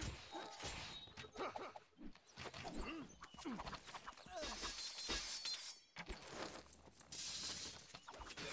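Swords and axes clash rapidly in a crowded battle.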